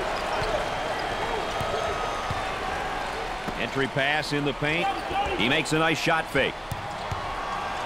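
A basketball bounces on a wooden court.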